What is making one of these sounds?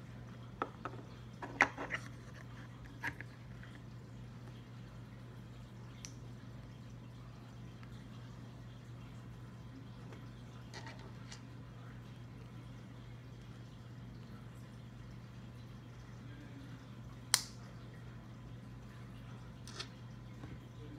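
Small plastic bricks click and snap together up close.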